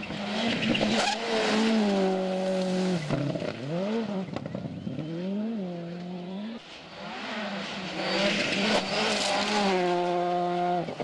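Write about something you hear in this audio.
Gravel sprays and crackles under spinning tyres.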